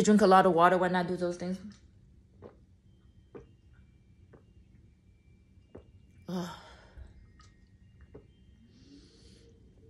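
A young woman gulps water from a bottle.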